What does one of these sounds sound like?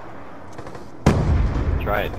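A rifle fires a shot.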